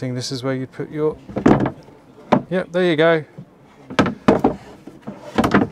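A wooden lid knocks against its frame.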